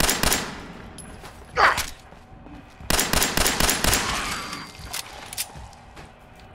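Guns fire in quick bursts of shots that echo around a metal hall.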